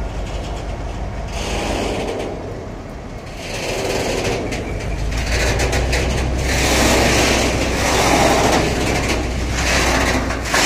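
Tank wagon wheels clatter and screech on the rails as a train rolls past.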